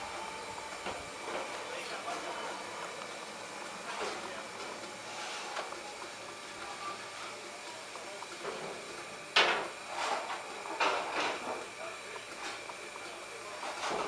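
A steam locomotive hisses softly nearby, outdoors.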